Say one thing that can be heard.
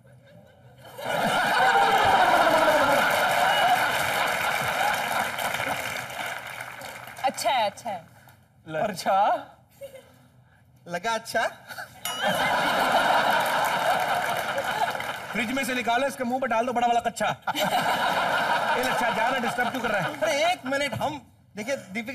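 An audience laughs and cheers loudly.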